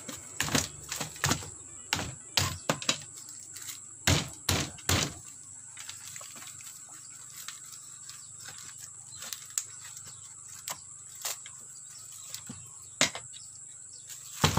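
Wooden pieces knock and tap against a wooden box.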